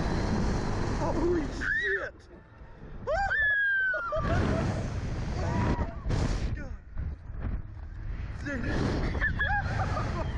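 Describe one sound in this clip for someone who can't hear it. A young girl screams close by.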